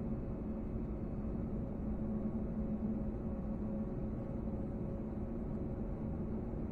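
A jet engine hums steadily and low inside an aircraft cabin.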